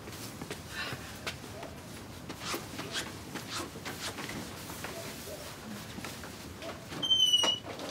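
Footsteps walk across a wooden floor.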